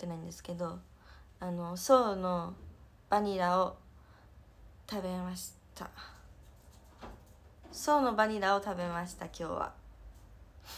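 A young woman speaks softly and expressively close to a microphone.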